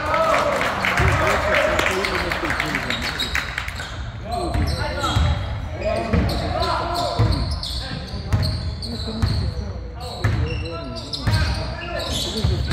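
A basketball bounces with dull thuds on a wooden floor.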